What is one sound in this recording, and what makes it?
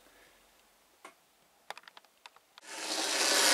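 Model train wheels click over the rail joints.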